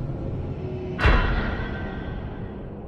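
A plane crashes into the ground with a loud boom.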